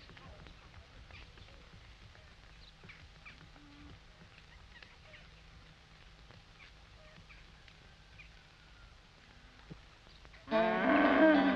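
Footsteps of a crowd shuffle softly on a gravel road.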